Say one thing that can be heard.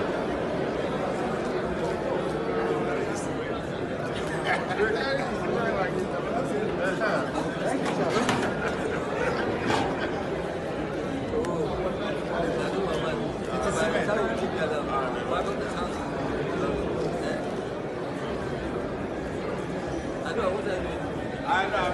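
Men chatter close by.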